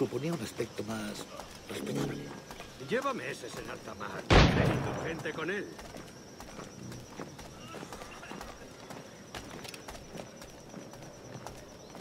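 Footsteps walk up stone steps.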